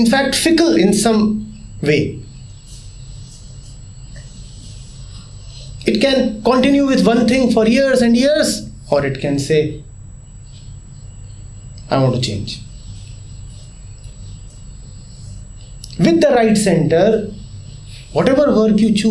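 A middle-aged man speaks calmly and thoughtfully into a close microphone, with pauses between phrases.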